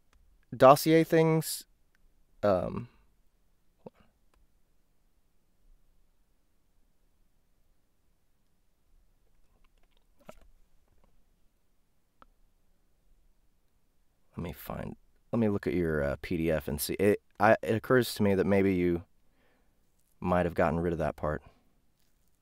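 A young man speaks calmly and closely into a microphone, with pauses.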